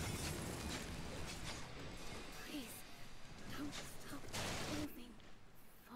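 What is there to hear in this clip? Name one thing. Magic blasts crackle and whoosh in a noisy fight.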